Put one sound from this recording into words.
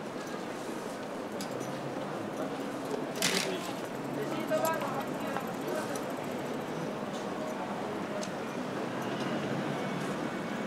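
Footsteps tap on pavement as people walk past.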